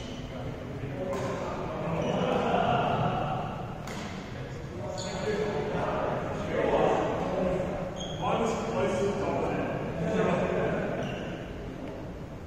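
Young men talk and call out across a large echoing hall.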